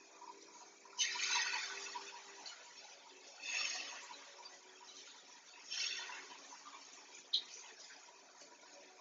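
Pots and lids clatter on a stove.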